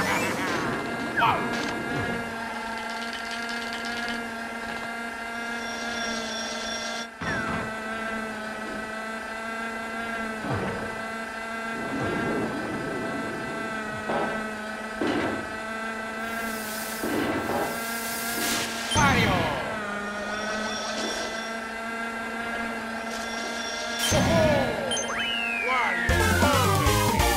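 Upbeat game music plays steadily.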